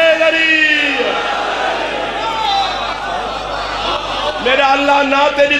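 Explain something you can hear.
A crowd of men chant loudly together.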